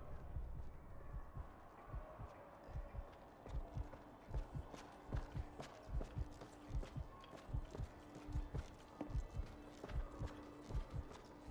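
Footsteps thud steadily as a small character walks.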